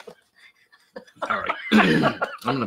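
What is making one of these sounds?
A woman laughs close to a microphone.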